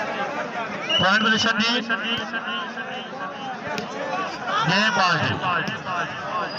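Men cheer loudly close by.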